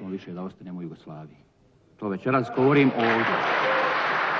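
An elderly man speaks firmly into a microphone in a large hall.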